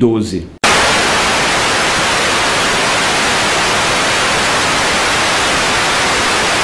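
Loud television static hisses steadily.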